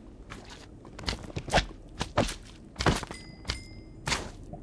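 Lava pops and hisses in short bursts.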